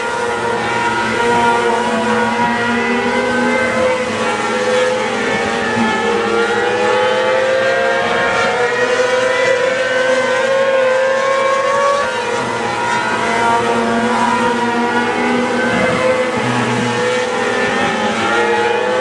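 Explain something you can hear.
Racing car engines roar loudly, rising and falling in pitch as the cars speed around the track.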